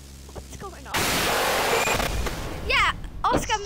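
A monster lets out a loud, harsh rushing screech.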